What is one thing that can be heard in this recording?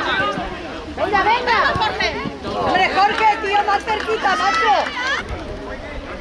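Spectators near the pitch call out and cheer.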